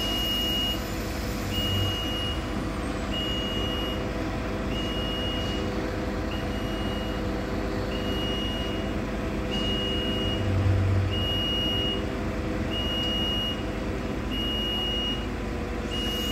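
A large crane engine rumbles steadily.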